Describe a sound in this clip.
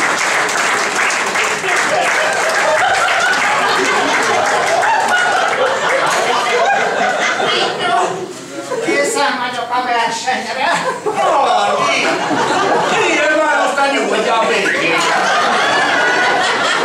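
A crowd of people chatters and cheers loudly.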